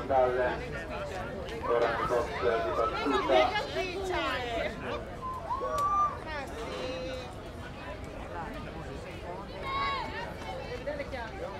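A group of young women chant and cheer from a distance, outdoors.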